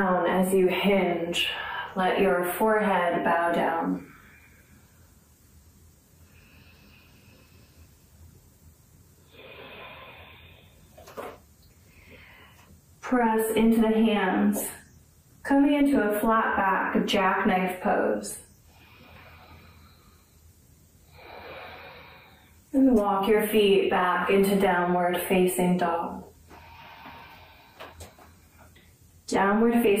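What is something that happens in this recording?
A young woman speaks calmly and clearly into a nearby microphone, pausing often.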